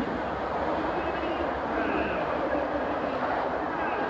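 A car engine revs in the distance.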